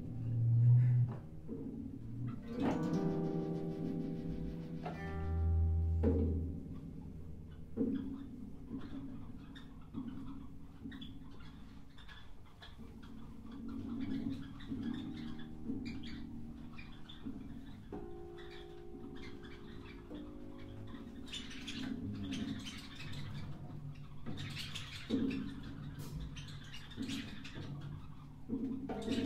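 A piano plays sparse, ringing notes.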